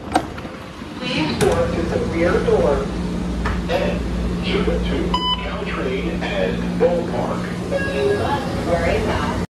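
A tram rumbles and hums steadily as it rolls along.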